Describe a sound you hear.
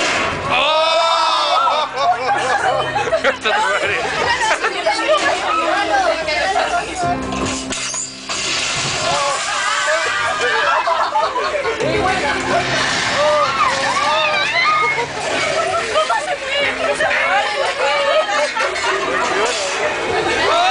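A crowd of young people screams and shouts excitedly nearby.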